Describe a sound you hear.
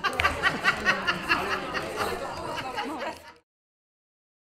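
An elderly woman sings loudly into a microphone.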